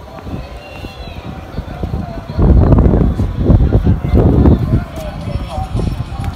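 A flag flaps in the wind.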